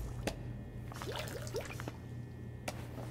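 A spray bottle squirts in a few short bursts.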